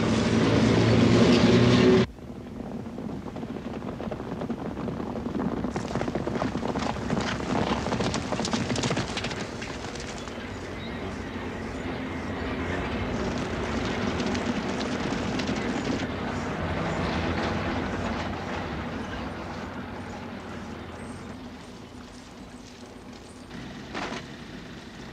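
Armoured cars rumble along with engines droning.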